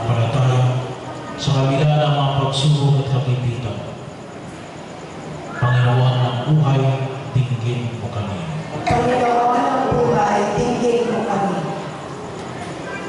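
An older woman speaks through a microphone over loudspeakers.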